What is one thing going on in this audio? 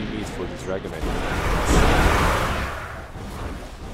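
A magical blast bursts with a loud whooshing roar.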